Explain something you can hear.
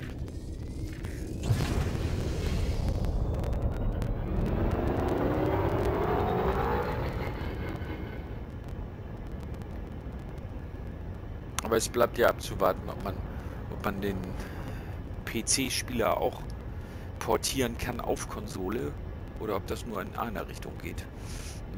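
A spacecraft engine rumbles low and swells into a rising whoosh before settling.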